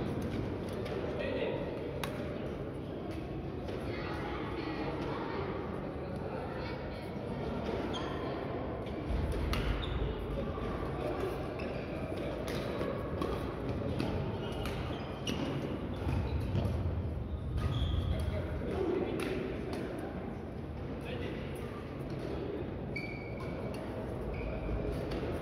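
Badminton rackets strike shuttlecocks with sharp taps in a large echoing hall.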